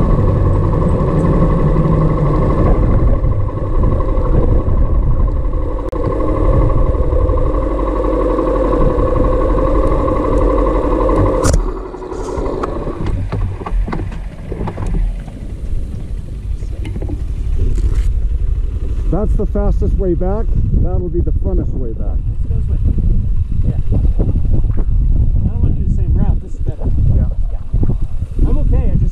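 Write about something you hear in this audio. Wind rumbles against the rider.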